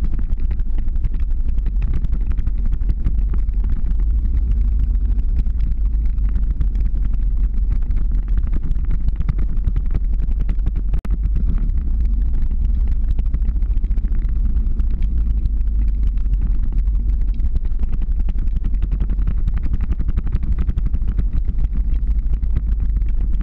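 Wind rushes loudly past at speed.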